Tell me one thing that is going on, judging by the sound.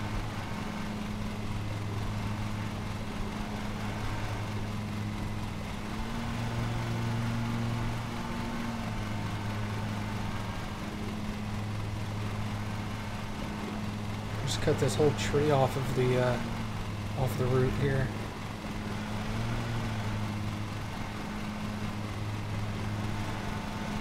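A mower engine hums steadily.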